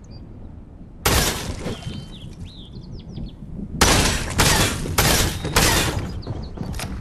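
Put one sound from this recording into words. A pickaxe swings and smashes wooden boards with loud, crunching crashes.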